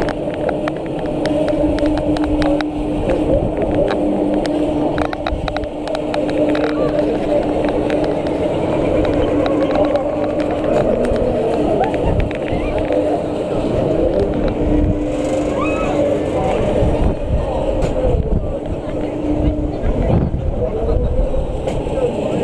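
A fairground ride hums and rumbles steadily as it swings.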